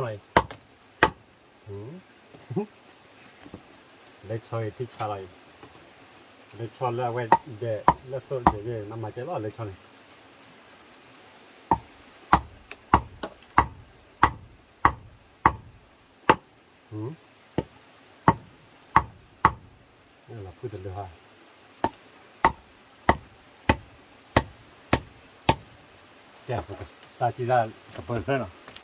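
A wooden mallet knocks a stake into the ground with sharp, repeated blows.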